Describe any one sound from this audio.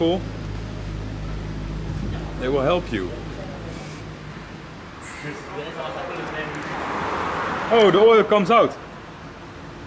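A young man talks to a close microphone.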